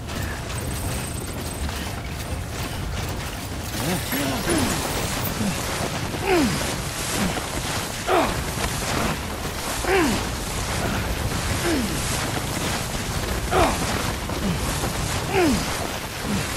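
Heavy footsteps crunch through deep snow.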